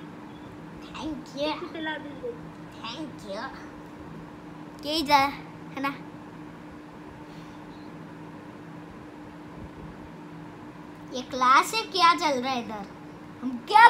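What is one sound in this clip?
A young boy talks and laughs excitedly close by.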